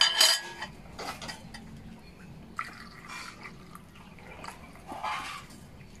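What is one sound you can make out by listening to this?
A metal pot scrapes across a surface.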